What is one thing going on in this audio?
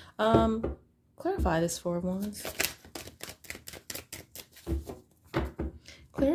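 Playing cards slide and tap softly against one another.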